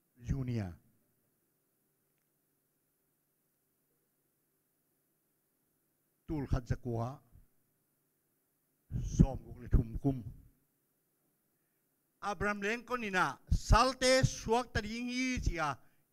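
An elderly man speaks into a microphone in bursts, growing more forceful, heard through a loudspeaker.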